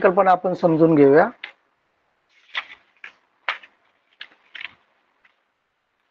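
Paper rustles as a sheet is moved about.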